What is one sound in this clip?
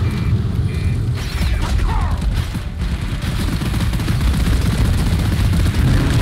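A game gun fires in a rapid, rumbling stream.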